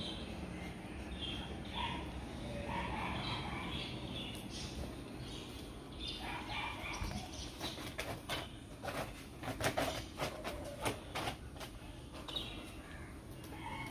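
Dog claws tap on a tiled floor.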